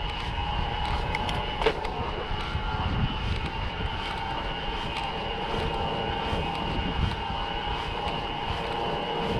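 Wind rumbles steadily past outdoors.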